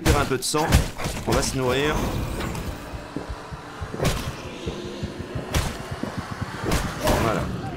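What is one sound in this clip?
Blades strike flesh in a fight with wolves.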